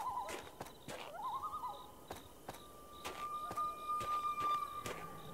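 Footsteps thud on stone blocks at a steady pace.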